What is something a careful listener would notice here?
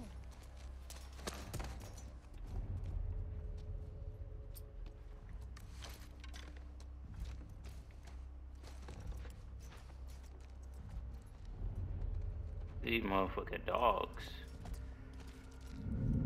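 Footsteps creak softly on wooden stairs and floorboards.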